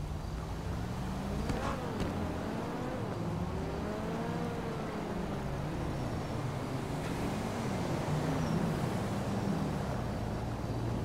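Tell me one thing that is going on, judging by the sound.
Car engines hum and pass by on a nearby street.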